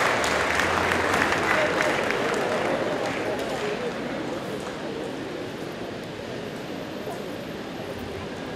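A crowd murmurs and chatters in a large hall, slowly growing quieter.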